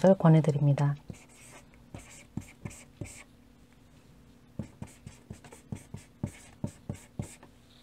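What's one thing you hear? A marker taps and squeaks on a board while writing.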